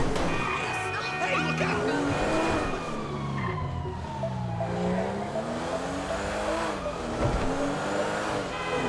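A car engine hums and revs up and down.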